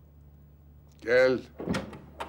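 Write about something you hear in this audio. A middle-aged man speaks in a low, calm voice close by.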